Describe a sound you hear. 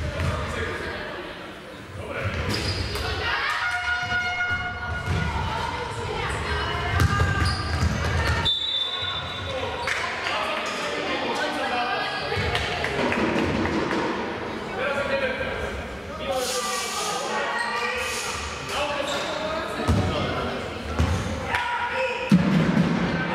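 Basketball players' shoes squeak on a hard floor in a large echoing hall.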